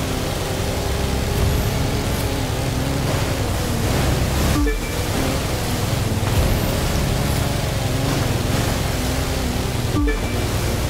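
Water hisses and splashes under a speeding hull.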